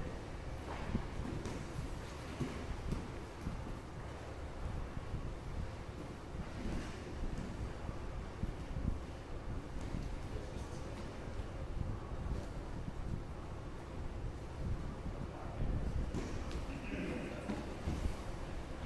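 Bodies shuffle and thump on floor mats in a large echoing hall.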